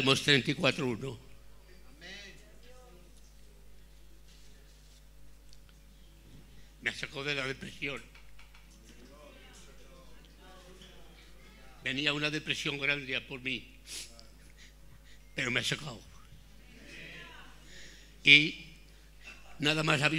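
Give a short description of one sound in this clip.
An elderly man speaks slowly into a microphone, with pauses.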